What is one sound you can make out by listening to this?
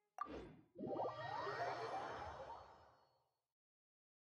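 A bright magical chime rings out and fades.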